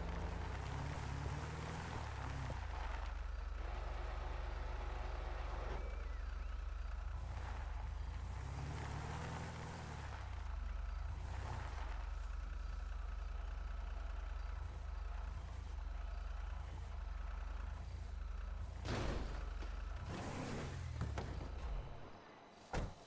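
A large vehicle engine rumbles and idles.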